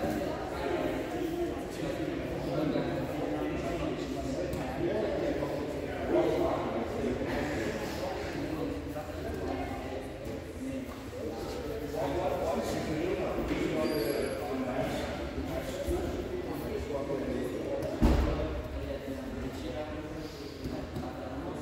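Several people talk and murmur in a large echoing hall.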